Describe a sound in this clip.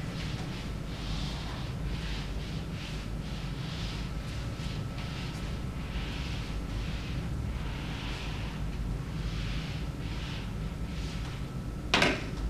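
An eraser rubs and swishes across a whiteboard in quick strokes.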